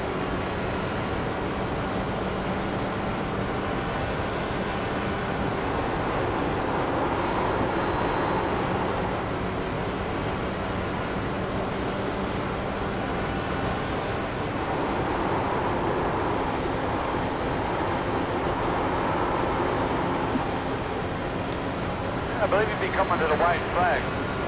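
A racing car engine drones steadily, rising and falling with speed.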